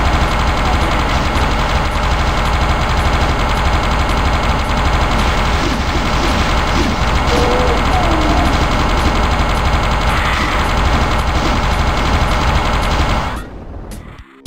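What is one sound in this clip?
A weapon fires in a rapid, buzzing stream of shots.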